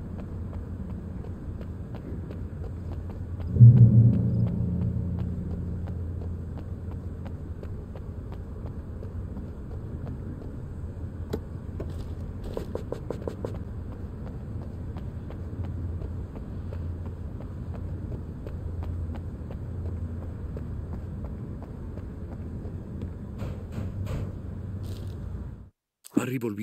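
A low rumble of wind drones steadily.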